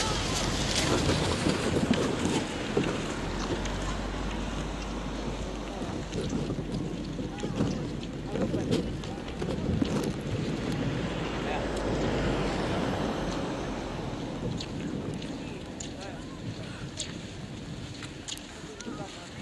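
Adults chat casually nearby outdoors.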